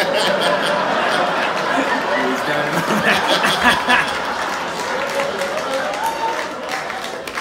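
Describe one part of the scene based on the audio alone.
A man laughs softly nearby.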